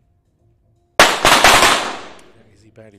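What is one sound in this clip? A second pistol fires a sharp shot that rings out in an echoing hall.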